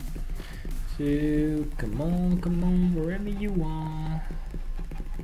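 A young man hums a short tune loudly, close to a microphone.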